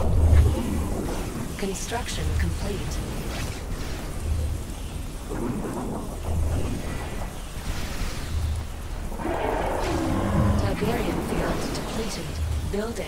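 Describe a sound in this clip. Energy weapons zap and crackle in rapid bursts.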